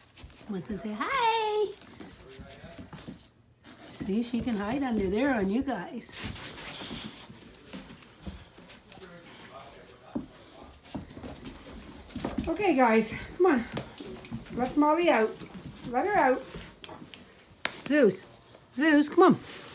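A dog whines in short, high, wavering cries close by.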